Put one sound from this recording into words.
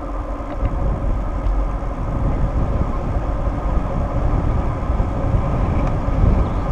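Wind buffets loudly against a moving vehicle outdoors.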